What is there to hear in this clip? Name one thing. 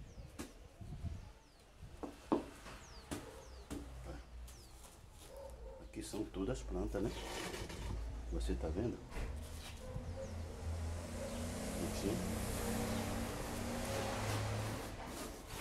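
Plant leaves rustle and crackle as they are handled.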